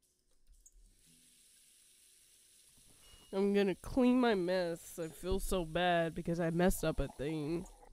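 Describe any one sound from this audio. Water runs steadily from a tap into a bucket.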